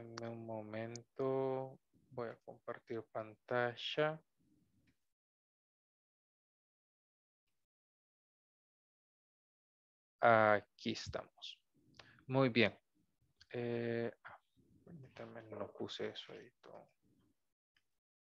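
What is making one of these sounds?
A young man speaks calmly through an online call, pausing between phrases.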